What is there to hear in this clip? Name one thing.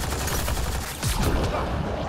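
An energy blast bursts with a loud whoosh.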